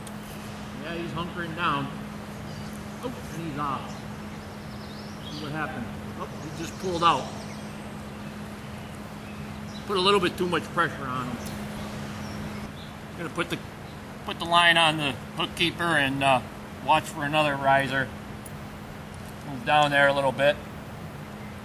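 A man talks calmly, close by, in short bursts.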